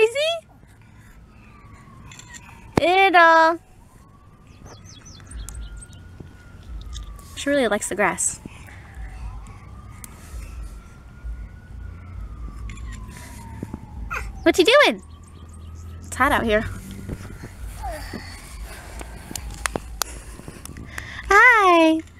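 A baby squeals and babbles in short, high bursts close by.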